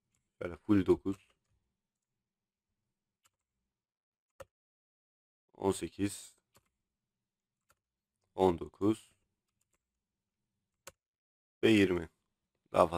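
A man speaks in short bursts into a close microphone, with pauses between.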